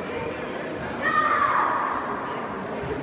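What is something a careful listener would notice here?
A young boy shouts sharply.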